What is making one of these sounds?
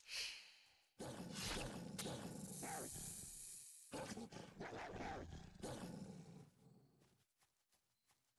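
A wolf growls and snarls in a fight.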